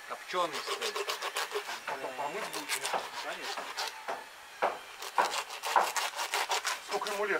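A knife cuts and scrapes through a fish.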